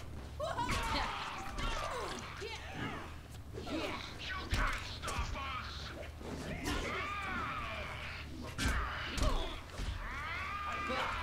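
Heavy blows land with wet, thudding impacts.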